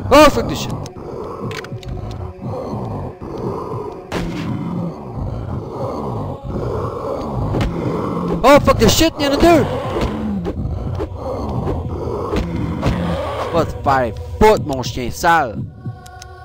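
A monster lets out shrill, wavering shrieks.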